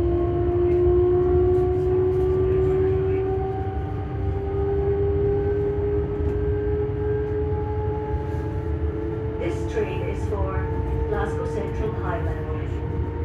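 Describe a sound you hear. A train's electric motors whine steadily, slowly rising in pitch.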